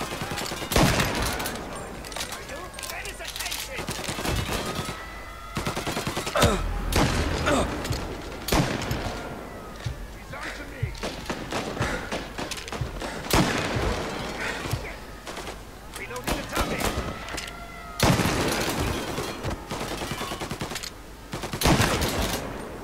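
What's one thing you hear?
A shotgun fires loudly, again and again.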